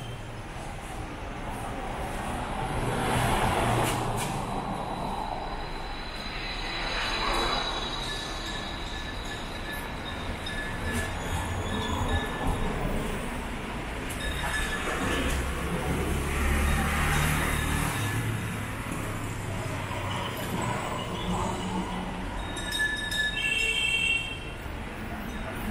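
Cars pass by on a street, rising and fading as they go.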